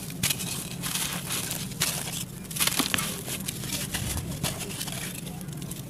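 Loose dirt trickles and patters down.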